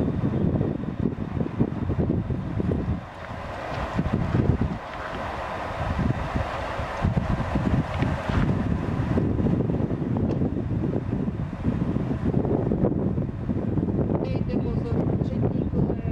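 A diesel train engine rumbles as the train rolls slowly closer.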